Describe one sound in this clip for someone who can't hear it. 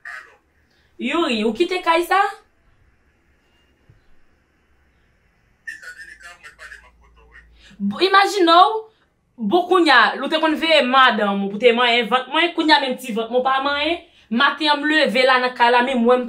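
A young woman speaks close by, with animation.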